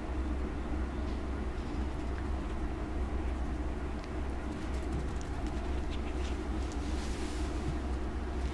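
A small puppy's paws patter softly on a fluffy mat.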